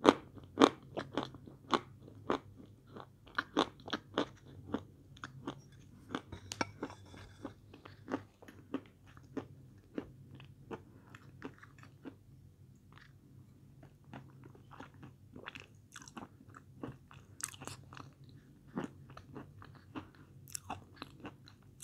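A woman chews soft food wetly and close up.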